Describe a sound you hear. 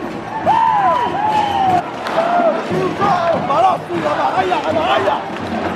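A man sings loudly and passionately close by.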